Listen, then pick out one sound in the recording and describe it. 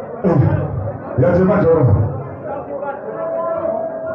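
A man talks loudly into a microphone over loudspeakers.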